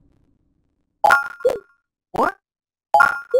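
Menu selection beeps sound in quick succession.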